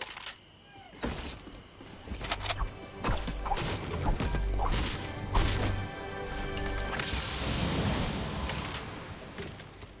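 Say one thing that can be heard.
A treasure chest hums and chimes, then bursts open with a clatter.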